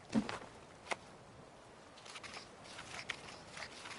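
A book snaps open and its pages rustle.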